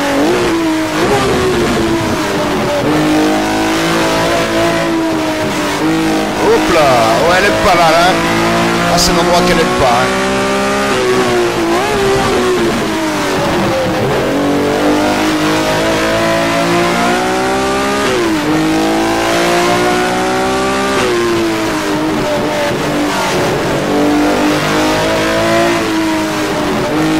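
A racing car engine roars through loudspeakers, its pitch climbing and dropping with each gear change.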